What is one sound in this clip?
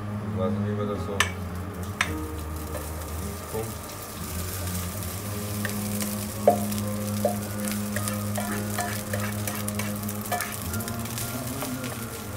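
Rice is scraped from a pot into a pan with a spoon.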